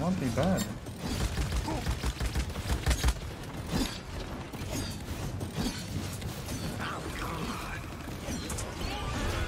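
Game weapons fire and blast in rapid bursts.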